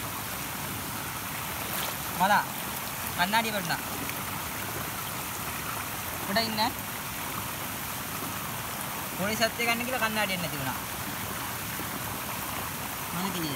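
Water splashes close by.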